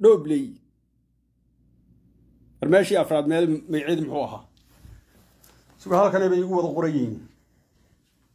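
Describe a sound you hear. A man speaks calmly and close to a phone's microphone.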